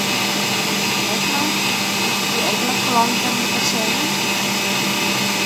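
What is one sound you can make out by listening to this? An electric stand mixer whirs steadily as its whisk beats cream.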